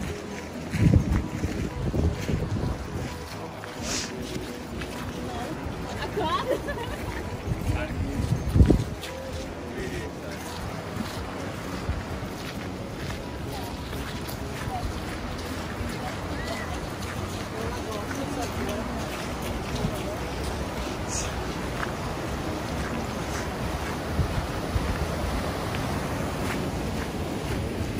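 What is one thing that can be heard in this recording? Footsteps crunch on a wet path.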